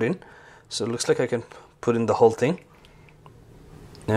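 Hot water pours into a cup.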